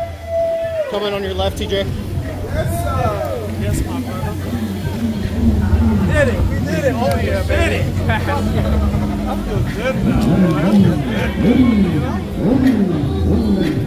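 A crowd of people talk and shout outdoors.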